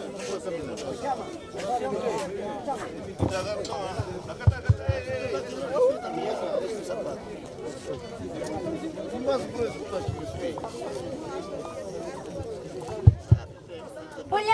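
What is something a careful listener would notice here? A band of saxophones plays a lively tune outdoors.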